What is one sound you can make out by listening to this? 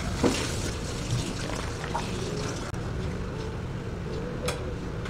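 Coffee pours over ice with a soft trickle.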